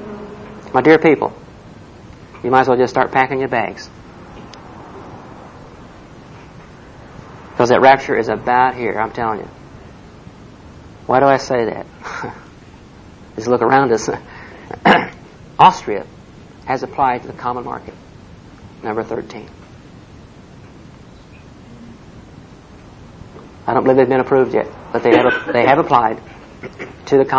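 A middle-aged man speaks slowly and calmly into a microphone, with long pauses.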